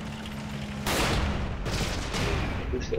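A rifle fires a sharp, loud shot.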